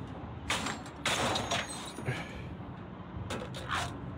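A small metal door clanks open.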